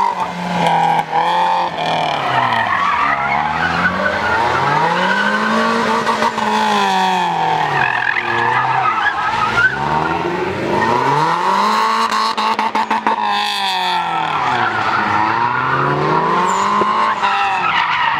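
A car engine revs hard, rising and falling in pitch again and again.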